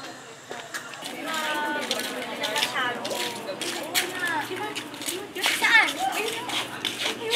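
Young women and men talk excitedly close by.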